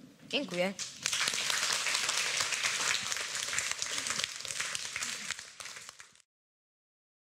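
A large crowd of children claps and applauds loudly.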